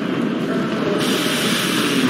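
Steam hisses steadily from a pipe.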